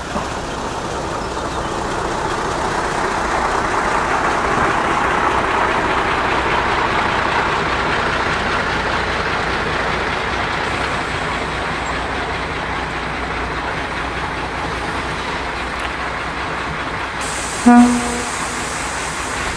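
A diesel railcar rumbles past close by on the rails.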